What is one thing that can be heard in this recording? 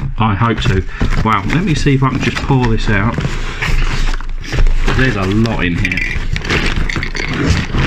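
A cardboard box scrapes and rubs as it is handled.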